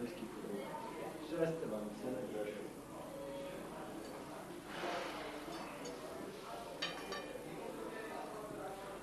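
Several men and women talk over one another nearby.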